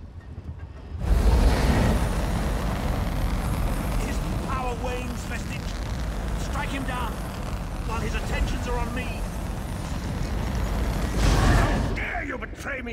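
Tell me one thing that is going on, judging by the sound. Magic beams roar and crackle loudly.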